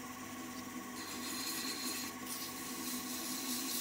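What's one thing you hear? Sandpaper rubs against spinning wood with a soft hiss.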